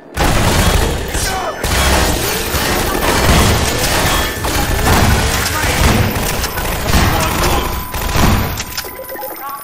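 Gunfire rattles loudly in rapid bursts.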